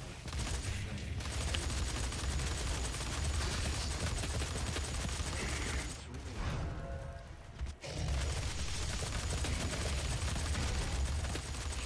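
Rapid gunfire blasts in quick bursts.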